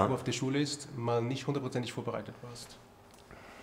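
A middle-aged man speaks calmly, close to a microphone.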